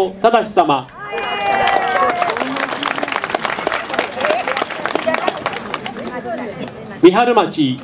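An audience applauds outdoors.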